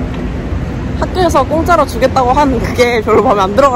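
A young woman talks excitedly and laughs close to a microphone.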